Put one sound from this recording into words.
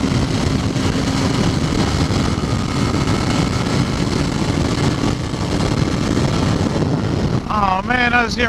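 Wind roars loudly past a fast-moving motorcycle.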